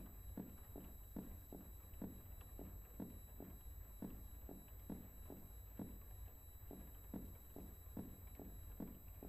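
Footsteps thud steadily and evenly on hard stairs.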